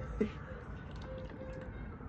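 A woman gulps a drink.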